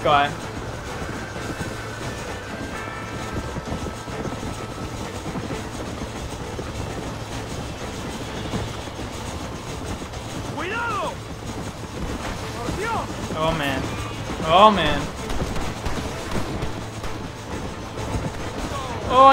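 A horse gallops over the ground.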